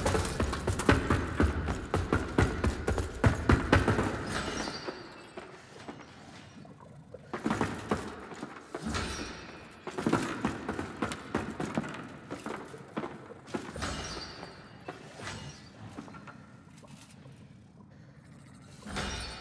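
Heavy footsteps thud and creak on wooden planks.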